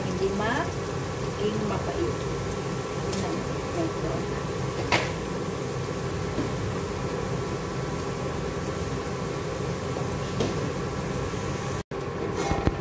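A wooden spoon scrapes and stirs inside a metal pot.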